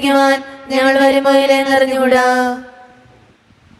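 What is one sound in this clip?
A man chants in a steady sung voice through a microphone.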